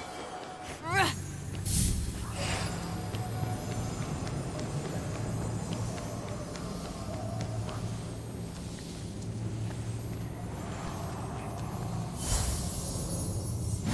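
A low magical hum drones steadily.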